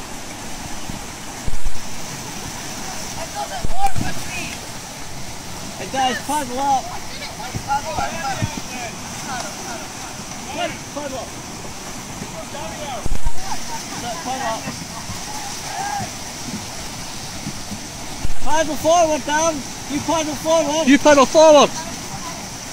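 White-water rapids rush and roar steadily close by.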